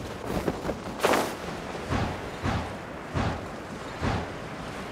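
Magical whooshing bursts ring out as a game character flies through glowing rings.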